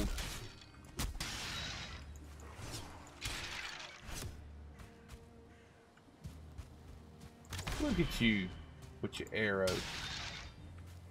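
Blows strike and crash in a fight.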